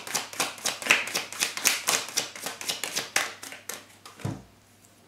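A deck of cards is shuffled with rapid, crisp flicks.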